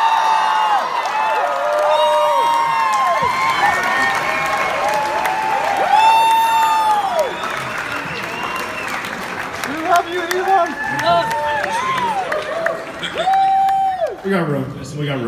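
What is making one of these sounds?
A large audience cheers and whoops loudly in a big hall.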